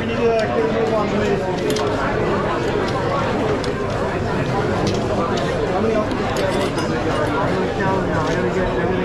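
A fork and spoon clink against a plate.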